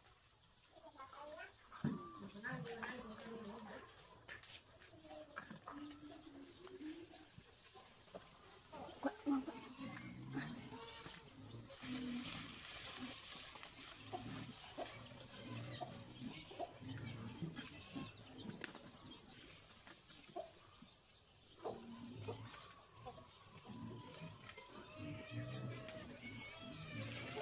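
Leaves rustle as branches are handled.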